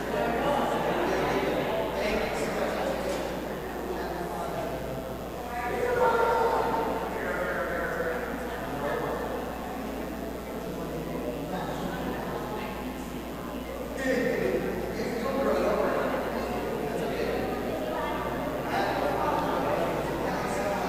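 A man chants slowly in a large echoing hall.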